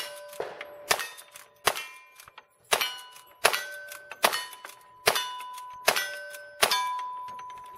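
Gunshots crack outdoors in quick succession.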